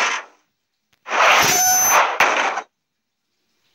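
A bright game jingle chimes when a reward pops up.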